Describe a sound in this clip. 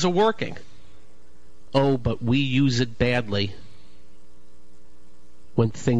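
A man speaks with animation into a microphone, in short bursts with pauses.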